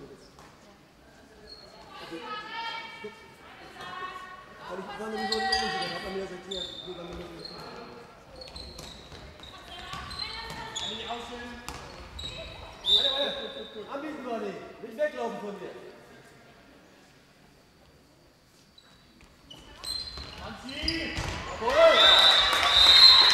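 Sport shoes squeak sharply on a hall floor.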